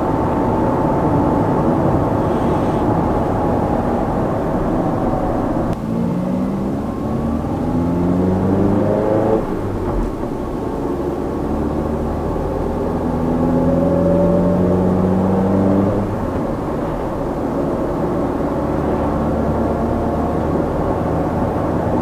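A car engine hums steadily and rises in pitch as the car speeds up through the gears.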